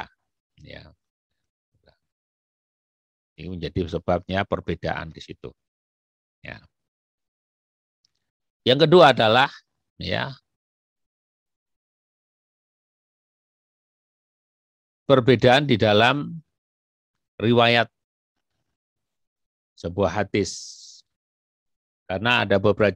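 A man speaks calmly through a microphone, in short phrases with long pauses.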